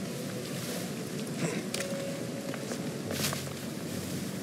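Water splashes and rushes nearby.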